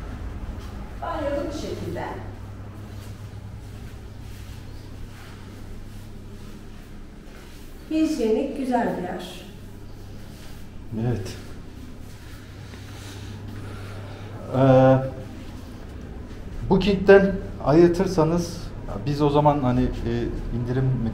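A man talks close by with animation.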